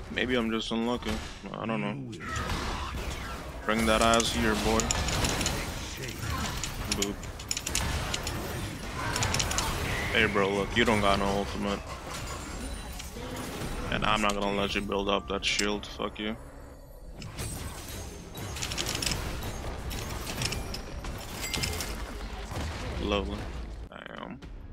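Fantasy battle sound effects of clashing blows and spells play throughout.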